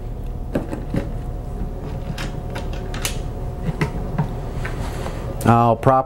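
Metal latches click open.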